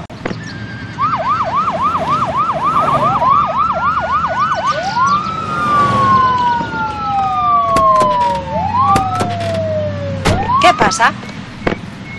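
Emergency vehicle sirens wail and yelp close by, rising and falling in pitch.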